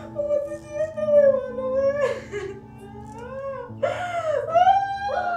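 A young woman wails and sobs loudly close by.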